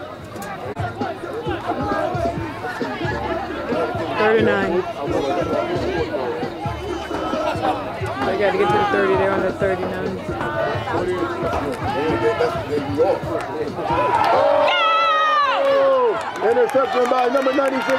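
Young men shout and call out on the field.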